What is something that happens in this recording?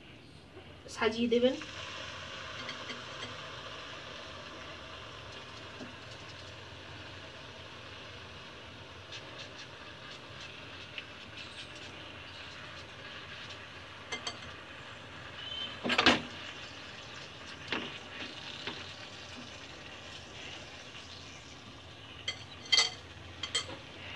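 Hot oil sizzles steadily in a frying pan.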